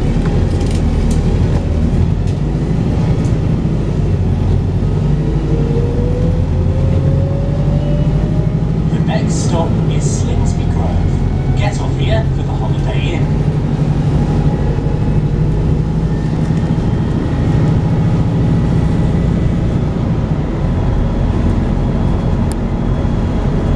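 A bus engine rumbles steadily from inside.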